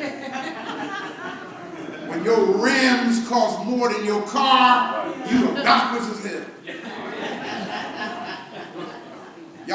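A man preaches with animation through a microphone in an echoing room.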